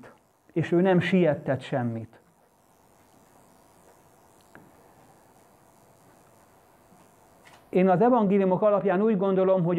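A middle-aged man speaks calmly, pausing between phrases.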